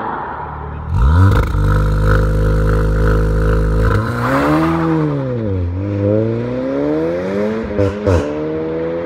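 A car engine revs hard while the car stands still.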